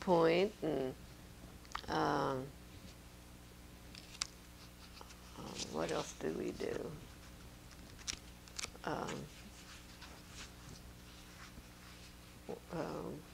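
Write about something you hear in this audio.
An elderly woman speaks calmly in short phrases into a close microphone, with pauses between them.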